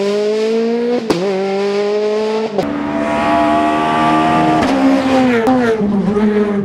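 A racing car engine roars loudly, shifting gears and revving up again.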